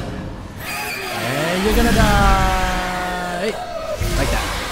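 A ghostly creature lets out a wavering, falling shriek.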